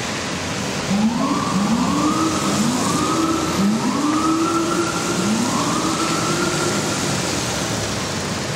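A police siren gives short repeated whoops.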